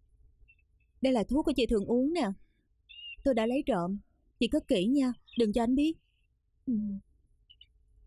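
A young woman speaks quietly and seriously close by.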